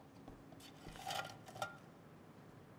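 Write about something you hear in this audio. A metal can clinks down among pens in a wire holder.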